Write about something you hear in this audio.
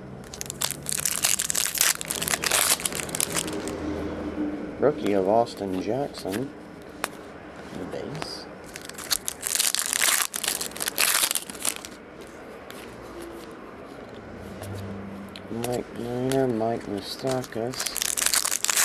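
Foil wrappers crinkle and rustle loudly up close.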